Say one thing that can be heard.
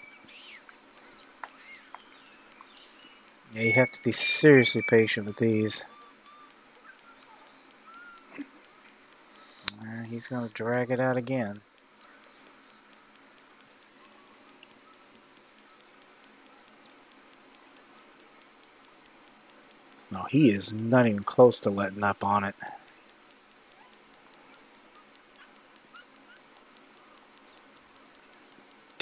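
A fishing reel clicks steadily as line is wound in.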